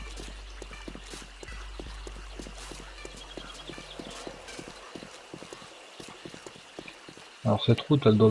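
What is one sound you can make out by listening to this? Footsteps crunch steadily on hard ground.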